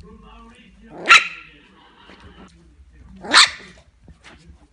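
A puppy yelps.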